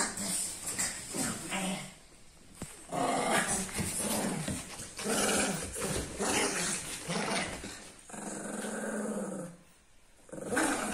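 Two dogs growl and snarl playfully.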